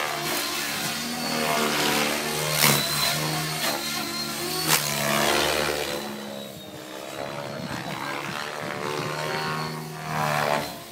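An electric radio-controlled helicopter whines and its rotor blades whir as it flies aerobatics overhead.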